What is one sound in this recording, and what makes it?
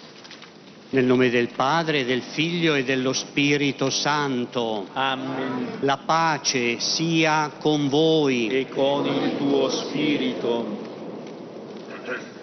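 An elderly man chants in a sung voice, echoing in a large hall.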